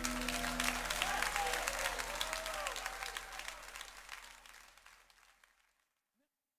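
Cymbals crash and ring.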